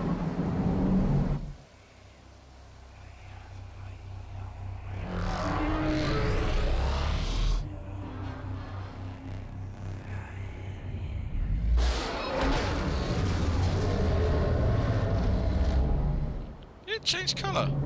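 A huge machine rumbles with a deep, heavy drone.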